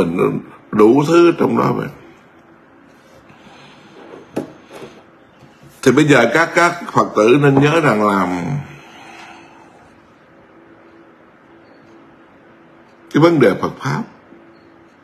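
A middle-aged man speaks calmly and slowly into a nearby microphone, with long pauses.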